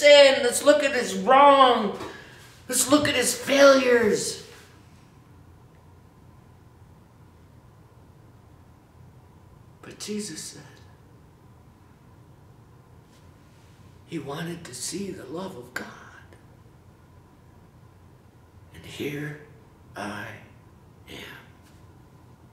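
A middle-aged man speaks close up, with animation and pauses.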